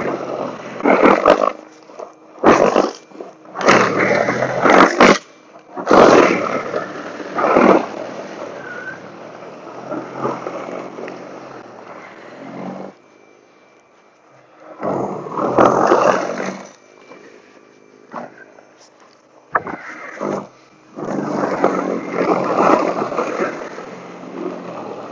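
Snow blower blades churn and throw snow.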